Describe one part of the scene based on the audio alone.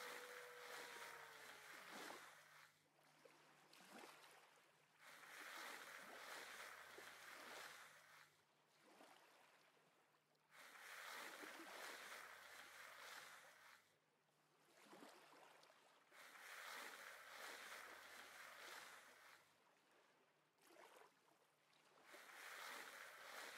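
Muffled underwater rushing swells and fades again and again.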